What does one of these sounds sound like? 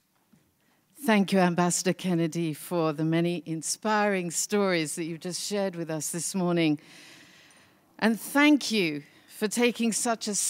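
A middle-aged woman speaks calmly into a microphone over loudspeakers in a large hall.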